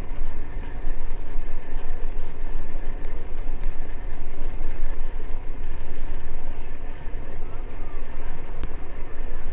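Wind blows hard and steadily outdoors with a low rumble.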